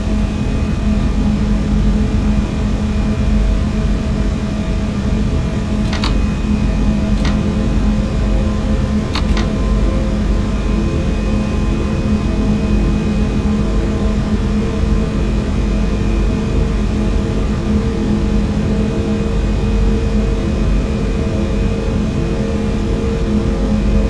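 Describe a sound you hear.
An electric train hums and rumbles steadily along the tracks.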